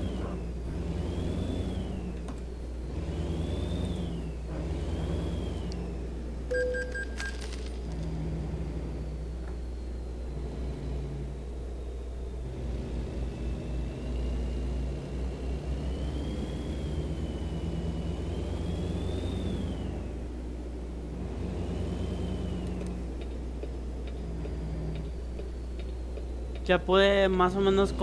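A truck engine rumbles low and steady, rising and falling as it shifts gears.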